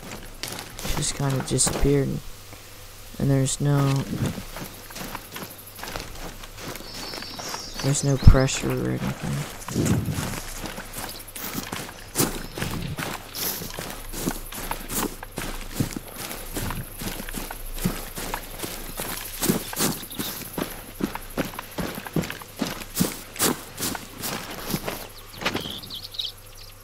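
Footsteps rustle through dry grass and leaves.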